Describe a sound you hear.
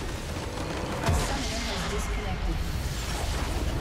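A structure shatters with a loud crash.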